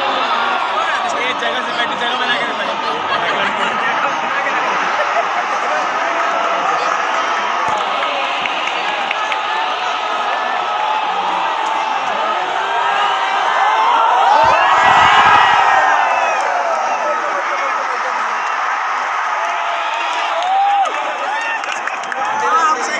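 A large stadium crowd roars and chants all around, in an open echoing space.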